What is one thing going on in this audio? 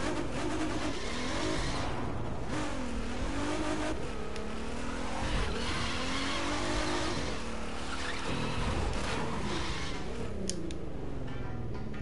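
A sports car engine revs and roars.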